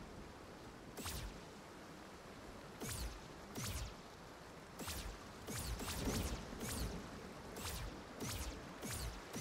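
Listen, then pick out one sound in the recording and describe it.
Light footsteps tap on stone.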